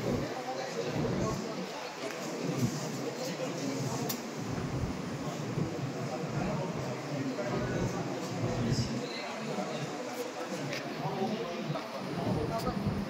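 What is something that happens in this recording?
A crowd of men and women murmur and chat nearby.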